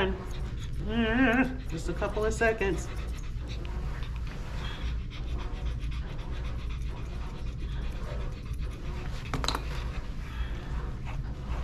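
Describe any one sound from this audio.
Scissors snip through fur.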